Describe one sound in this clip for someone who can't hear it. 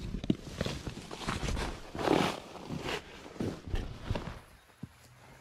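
A tarp and leaves rustle and crackle close by.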